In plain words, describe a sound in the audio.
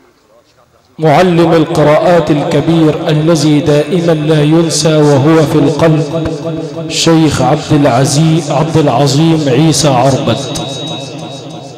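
A young man sings loudly into a microphone, heard through loudspeakers in an echoing space.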